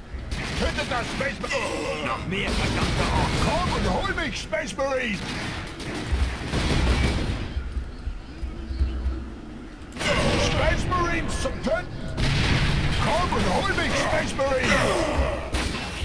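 Heavy gunfire bursts in rapid shots.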